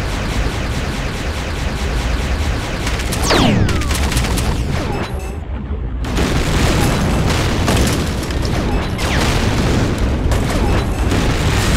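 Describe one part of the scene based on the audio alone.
Explosions burst loudly.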